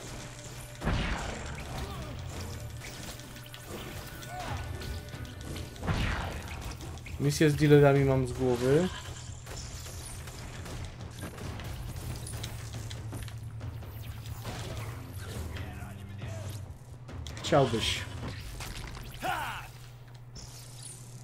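Game blasts and energy bursts crackle and boom.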